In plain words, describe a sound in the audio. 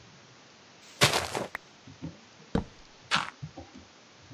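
Dirt is dug with a shovel in crunchy scrapes.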